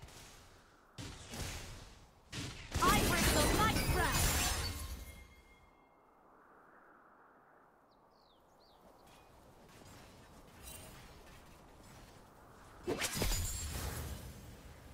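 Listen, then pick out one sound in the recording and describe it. Game attacks clash with sharp impacts.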